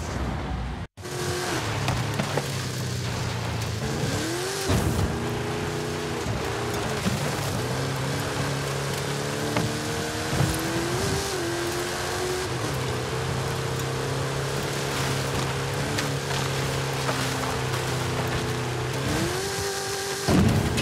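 An off-road buggy engine drones and revs steadily.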